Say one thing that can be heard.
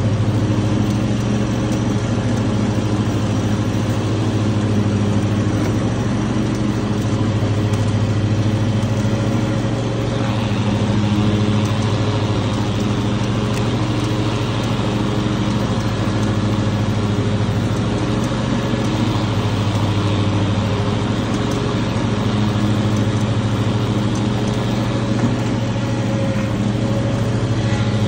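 A lawn mower engine drones steadily up close.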